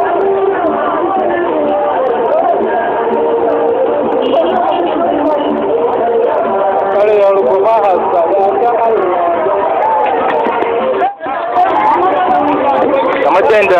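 A large crowd of men and women shouts and cheers outdoors.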